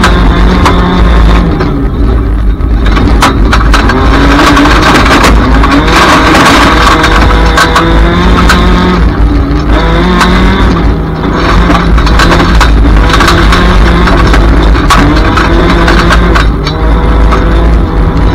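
A race car engine roars loudly, revving up and down as gears change.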